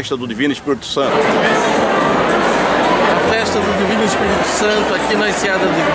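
A middle-aged man speaks close to the microphone.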